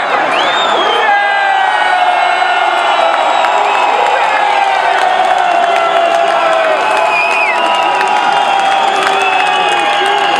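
A large crowd cheers and roars loudly outdoors.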